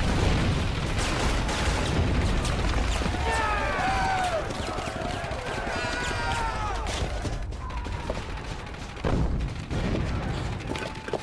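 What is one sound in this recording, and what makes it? Gunfire cracks in bursts.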